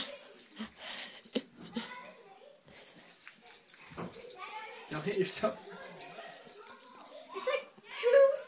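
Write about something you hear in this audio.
A toy maraca rattles as it is shaken quickly.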